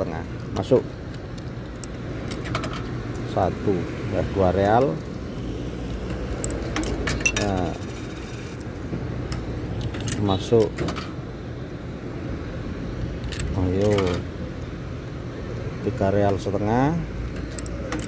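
Coins clink as they drop one by one into a parking meter.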